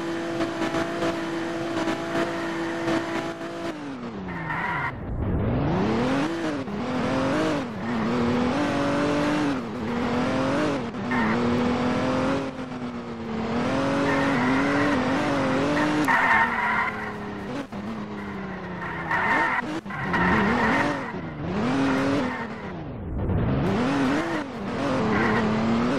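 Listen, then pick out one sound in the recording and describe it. A car engine revs up and down as the car speeds up and slows.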